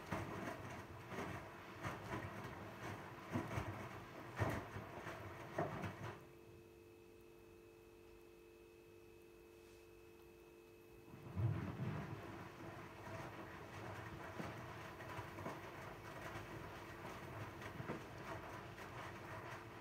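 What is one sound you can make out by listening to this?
A washing machine tumbles laundry with soft thumps and sloshing.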